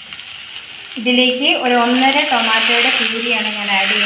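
A thick sauce pours into a hot pan.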